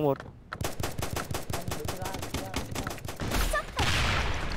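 Automatic rifle gunfire rattles in rapid bursts.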